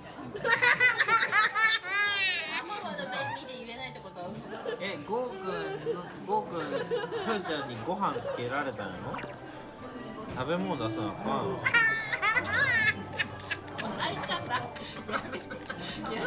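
A young girl laughs loudly and shrieks close by.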